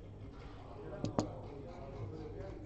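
Dice clatter onto a wooden board.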